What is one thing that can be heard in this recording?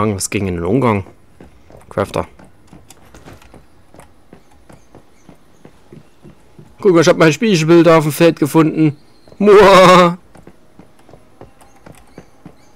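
Footsteps patter quickly on a roof.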